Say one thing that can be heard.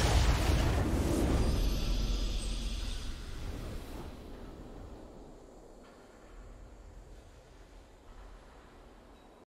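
A triumphant game fanfare swells and slowly fades away.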